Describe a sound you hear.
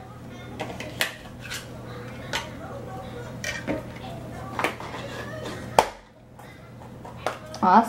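Hollow plastic toys clack and knock against each other on a hard floor.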